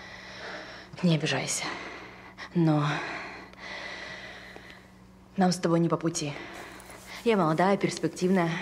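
A young woman speaks anxiously close by.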